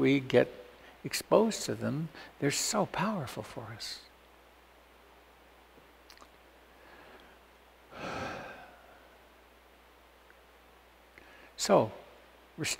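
An elderly man speaks calmly and close to a microphone, with pauses.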